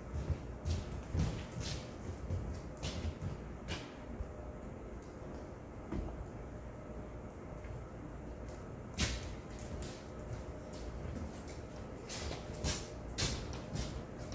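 Footsteps shuffle across a hard floor nearby.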